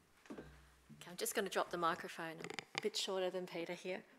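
A woman speaks clearly through a microphone.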